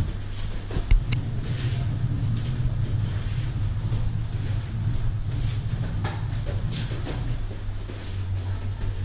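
Bare feet shuffle and thud on a padded floor.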